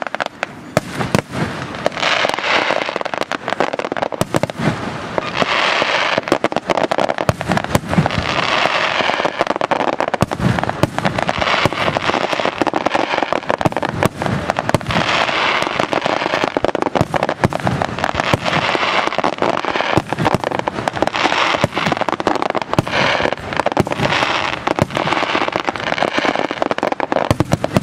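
Fireworks crackle and hiss as sparks scatter.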